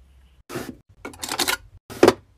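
Small plastic beads rattle in a sliding drawer.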